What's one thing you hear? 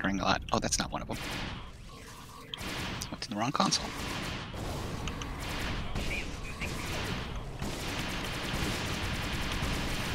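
Energy weapons fire in quick bursts.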